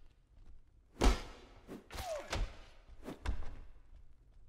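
Blows land with sharp thuds in a fight.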